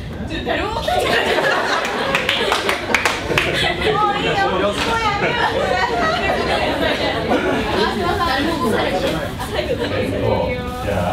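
A group of young people laugh and chatter together.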